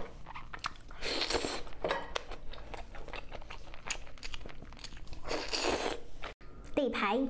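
A young woman sucks sauce off meat with loud slurps close to a microphone.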